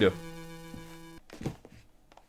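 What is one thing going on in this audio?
A handheld game console plays short electronic beeping tones.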